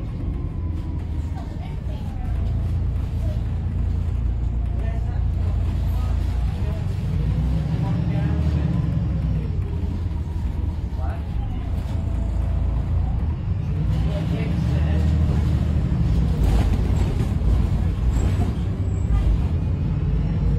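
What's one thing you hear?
A bus body rattles and creaks over the road.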